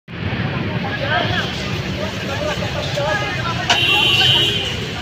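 A crowd of men and women talks and shouts outdoors.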